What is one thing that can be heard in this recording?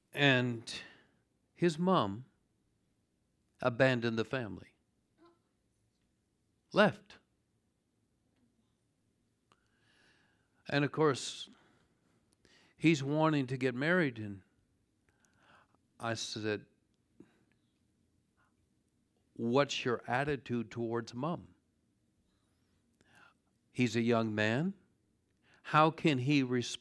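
A man speaks calmly into a close microphone, with pauses between phrases.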